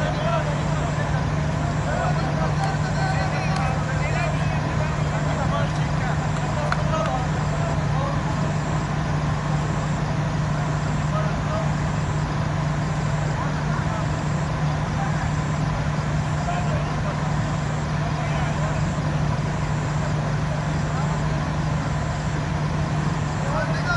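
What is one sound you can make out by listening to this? Men talk to one another outdoors, some way off.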